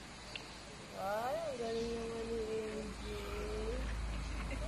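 A young woman calls out nearby in a sing-song voice.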